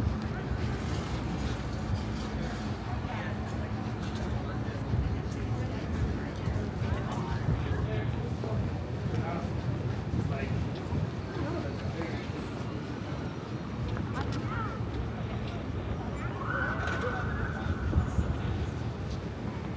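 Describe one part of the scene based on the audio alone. Voices of passers-by murmur in the distance.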